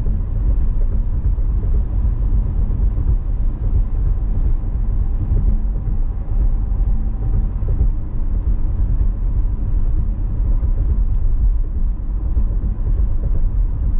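A car drives at speed on a highway, with low road rumble heard from inside.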